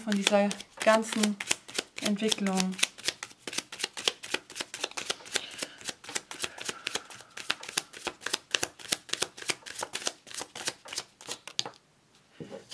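Playing cards riffle and flutter as they are shuffled by hand.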